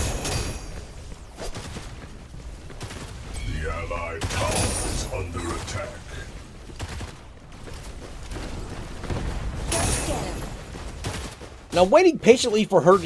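Blades swish and clash in a fast fight.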